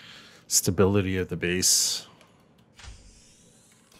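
A hatch door opens with a short hiss.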